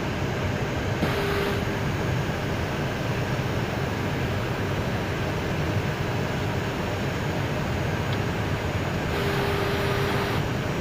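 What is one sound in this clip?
Aircraft engines roar steadily over a rush of air.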